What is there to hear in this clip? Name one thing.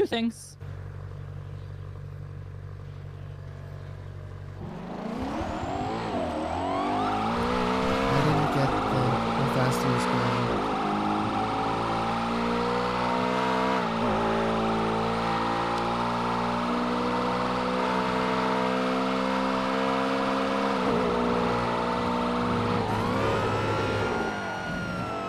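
A car engine idles, then revs hard and roars as the car speeds up, with the pitch climbing and dropping through gear changes.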